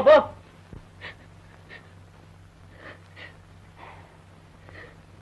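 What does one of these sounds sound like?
A woman sobs softly.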